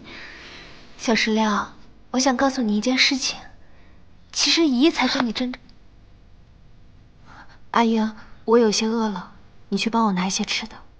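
A young woman speaks calmly, close by.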